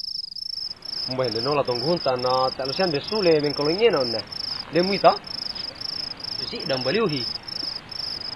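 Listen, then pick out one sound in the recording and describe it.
A young man asks questions with puzzlement, close by.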